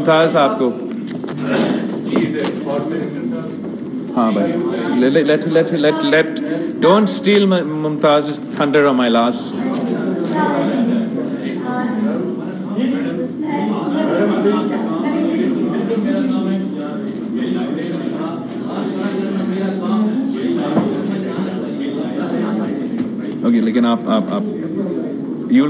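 A young man speaks steadily into a microphone.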